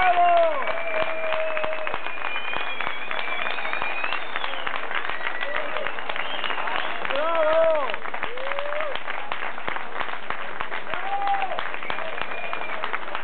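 An audience claps along in a steady rhythm.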